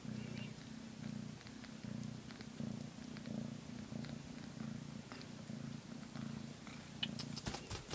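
A cat purrs steadily and close by.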